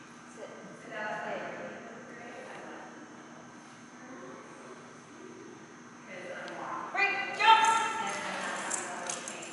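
A woman speaks to a dog in a high, excited voice in an echoing hall.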